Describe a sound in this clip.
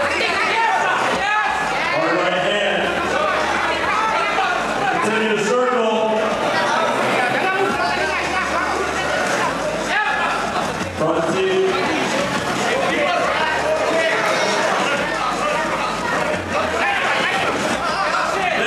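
A crowd shouts and cheers loudly, close by.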